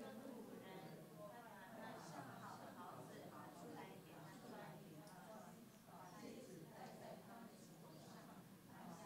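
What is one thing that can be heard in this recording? A man speaks steadily through a microphone in a large room with a slight echo.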